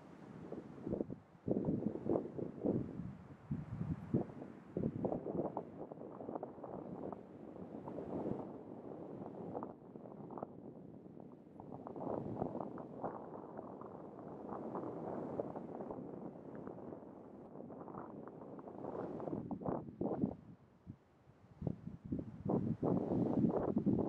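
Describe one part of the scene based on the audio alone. An elephant seal makes deep, throbbing, rattling grunts close by.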